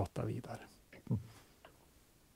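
A middle-aged man speaks briefly and calmly into a microphone.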